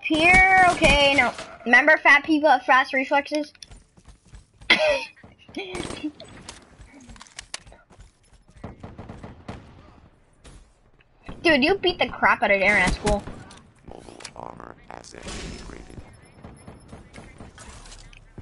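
Rapid gunshots crack from a video game.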